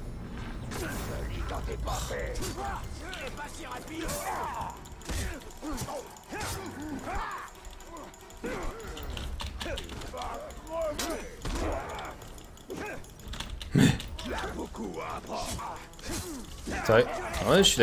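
Swords clash and strike in a game fight.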